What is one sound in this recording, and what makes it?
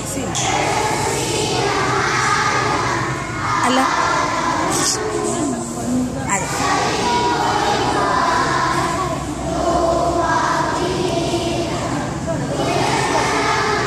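A woman speaks through a microphone and loudspeaker, echoing outdoors.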